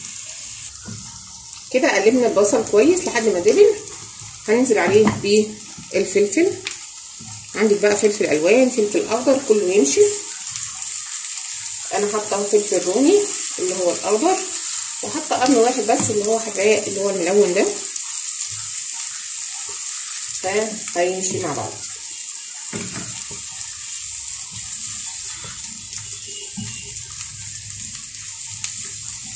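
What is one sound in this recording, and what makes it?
Food sizzles steadily in hot oil in a pan.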